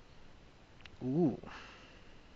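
A card game plays a short chiming tone.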